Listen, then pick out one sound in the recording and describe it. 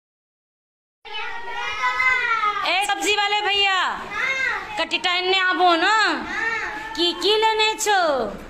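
Children sing loudly together.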